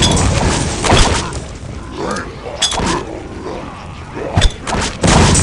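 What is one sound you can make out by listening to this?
Heavy impacts thud and burst.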